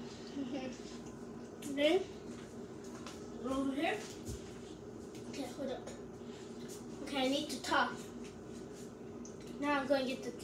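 A child speaks close by with animation, in a high voice.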